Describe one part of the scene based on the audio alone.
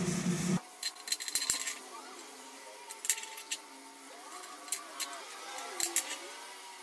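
Tin snips cut through thin sheet metal with sharp clicks.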